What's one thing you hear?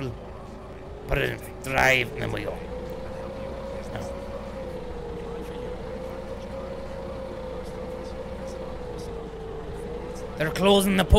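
A forklift engine hums steadily.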